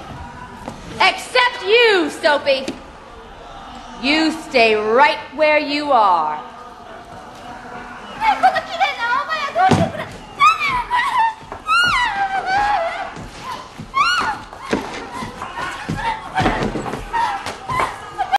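A woman shouts loudly and angrily, her voice echoing in a large hall.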